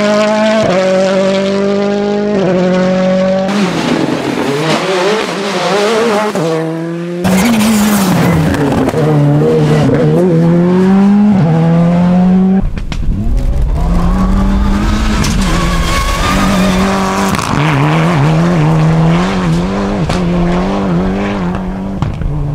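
A rally car engine roars and revs hard as the car speeds past, shifting gears.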